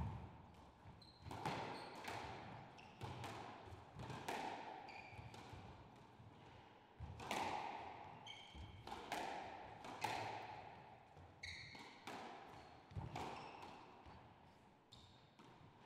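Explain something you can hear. Sneakers squeak sharply on the wooden floor.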